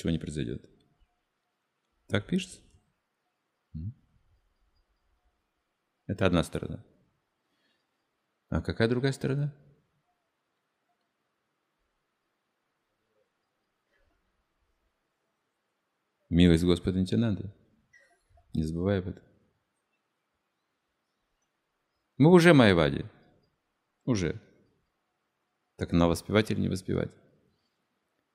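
An elderly man speaks calmly into a microphone, in short phrases with long pauses.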